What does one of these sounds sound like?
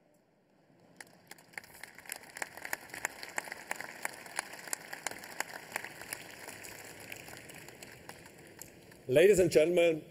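An audience claps and applauds in a large hall.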